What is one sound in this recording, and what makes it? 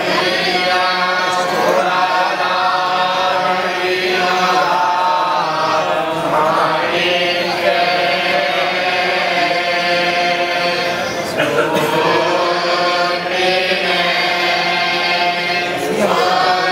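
A group of men chant together in steady unison, loud and close.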